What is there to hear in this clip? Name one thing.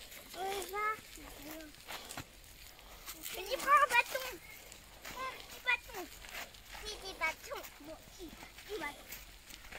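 Young boys talk and call out with animation outdoors.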